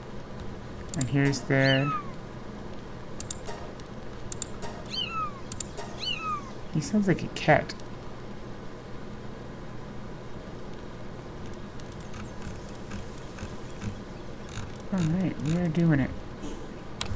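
A young woman talks casually into a microphone, close by.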